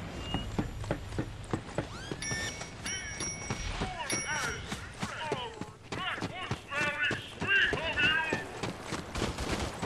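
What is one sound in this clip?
Rapid gunshots ring out in quick bursts.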